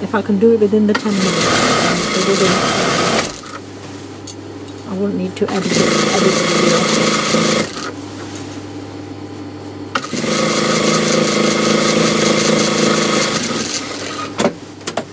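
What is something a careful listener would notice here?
A sewing machine stitches in fast whirring bursts.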